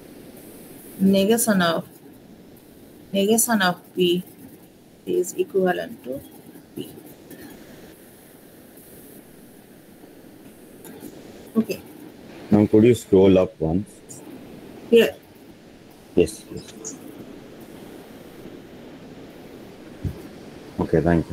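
A young woman speaks calmly in bursts through an online call.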